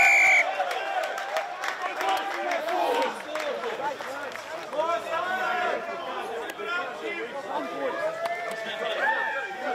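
Men shout and call out at a distance outdoors.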